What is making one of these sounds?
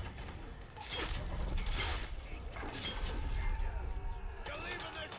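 Heavy blows crash and thud in a fight.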